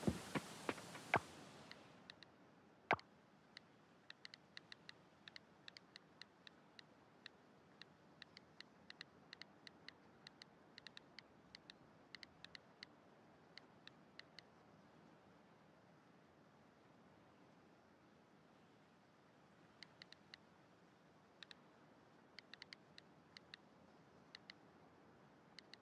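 Soft interface clicks tick quickly as a cursor moves over menu items.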